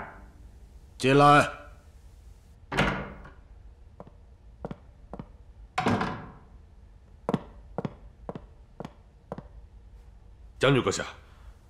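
A man speaks curtly nearby.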